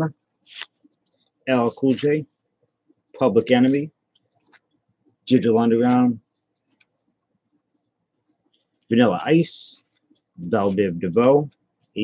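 Trading cards rustle and flick as they are shuffled by hand.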